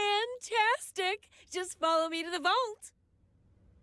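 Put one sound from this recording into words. A young woman speaks cheerfully and brightly, heard clearly up close.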